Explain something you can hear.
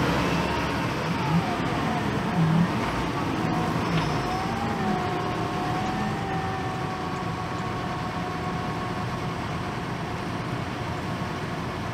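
Sand and gravel scrape and pour into a loader bucket.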